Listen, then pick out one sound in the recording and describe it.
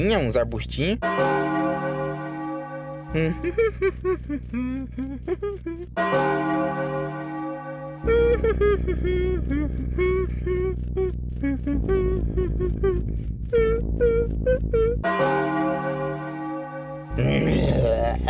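Slow, eerie electronic music plays.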